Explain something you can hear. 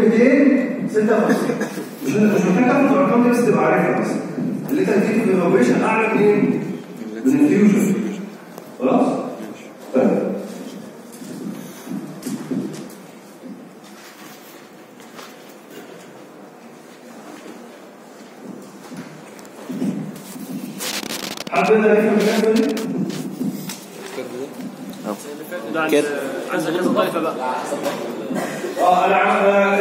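A man lectures through a microphone and loudspeaker in a large echoing room, speaking calmly.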